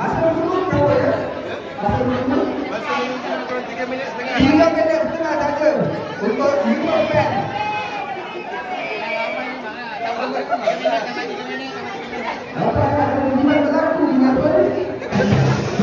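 A man talks loudly through a microphone and loudspeaker.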